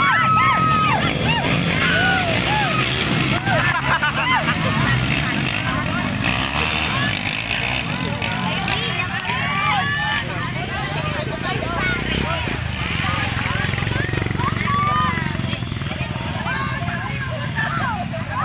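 Motorbike engines drone and rev across an open field.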